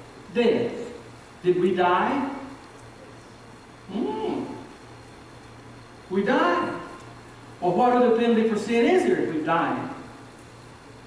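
A middle-aged man speaks with feeling through a microphone in a large room, pausing between phrases.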